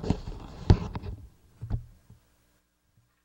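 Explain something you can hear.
Clothing rustles and brushes close by as a man moves about.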